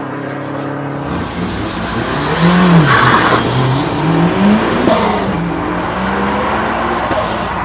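A car engine revs hard and roars as the car speeds away.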